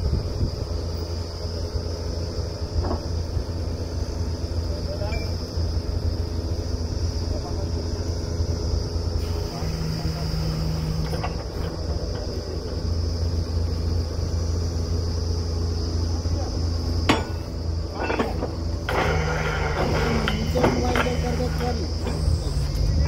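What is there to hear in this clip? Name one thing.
A drilling rig's engine runs with a steady low drone outdoors.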